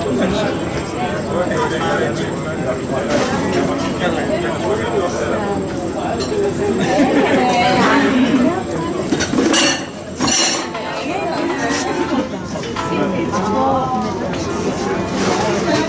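A crowd of adults chatters close by.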